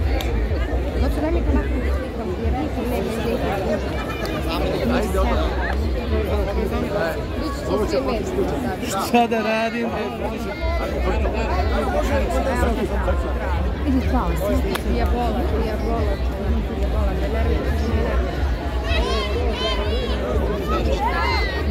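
A crowd of men and women chatters and talks loudly close by.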